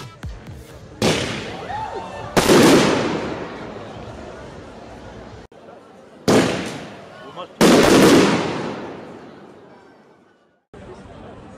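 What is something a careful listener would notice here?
Firework shells burst with loud booming bangs that echo away.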